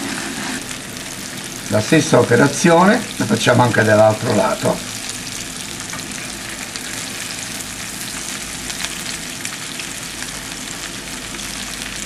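Metal forks scrape and tap against a frying pan.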